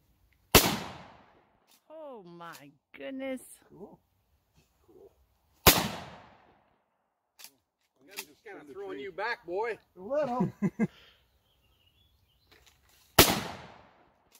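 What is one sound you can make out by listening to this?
A gun fires loud single shots outdoors, each echoing away.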